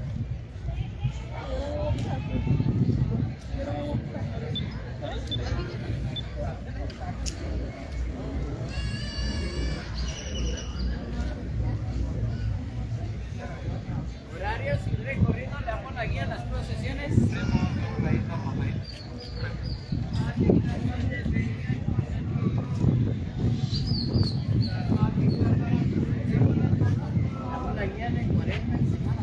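Footsteps of a marching procession shuffle on the street.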